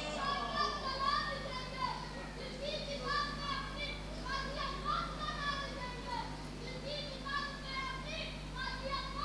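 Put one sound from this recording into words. A young boy chants loudly and with fervour, heard through a loudspeaker in an echoing hall.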